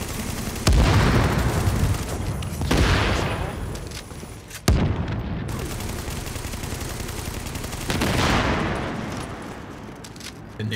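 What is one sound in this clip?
Gunfire cracks in short bursts.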